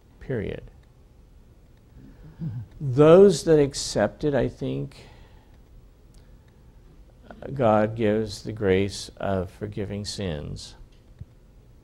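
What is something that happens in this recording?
An older man speaks calmly and close by, in short phrases with pauses.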